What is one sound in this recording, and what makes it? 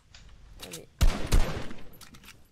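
A gun fires a burst of loud shots.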